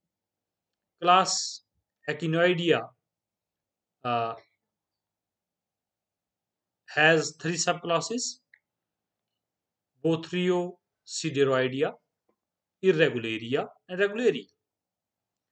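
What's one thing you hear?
A man speaks calmly and slowly in short phrases, heard through a microphone over an online call.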